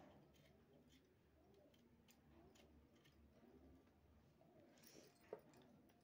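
Dry garlic skins rustle and crackle.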